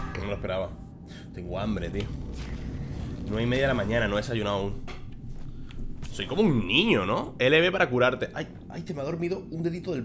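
A young man talks animatedly close to a microphone.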